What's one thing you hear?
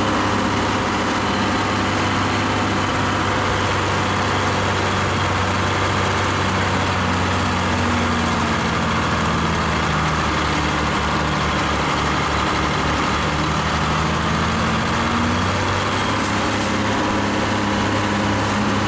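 Material slides out of a tipped truck bed with a rushing hiss.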